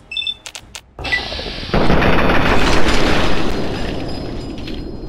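A rifle fires a loud burst of shots that echo.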